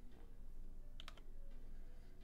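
A short menu blip sounds.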